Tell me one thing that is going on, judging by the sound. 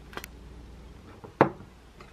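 A glass jar knocks on a hard counter.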